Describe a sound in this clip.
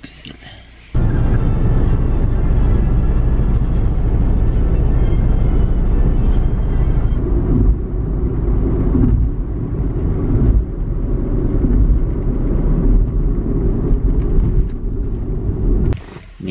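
A car rumbles steadily on a road, heard from inside.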